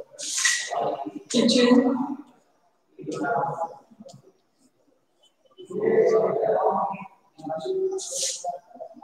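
A woman speaks clearly and slowly, as if teaching, close by.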